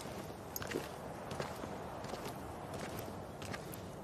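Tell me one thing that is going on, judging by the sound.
Footsteps tap slowly on a hard stone floor.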